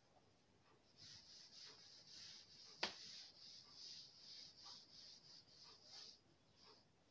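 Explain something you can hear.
A cloth wipes across a chalkboard with soft rubbing.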